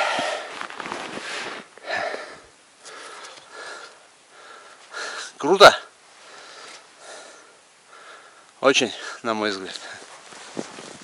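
A man talks close up in a calm, animated voice.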